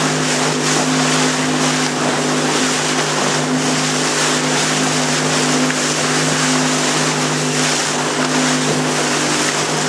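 Water rushes and splashes past a small boat's hull.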